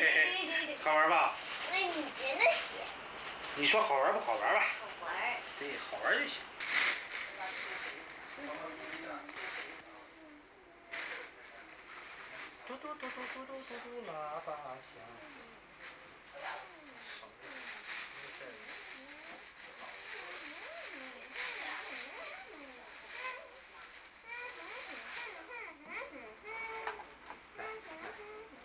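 A young girl speaks softly close by.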